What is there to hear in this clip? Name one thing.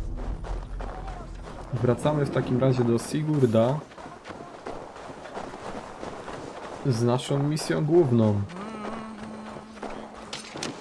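Footsteps crunch quickly on snow.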